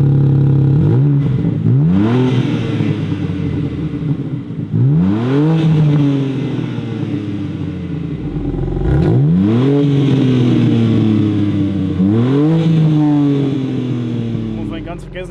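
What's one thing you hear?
A car engine revs sharply several times, then settles back.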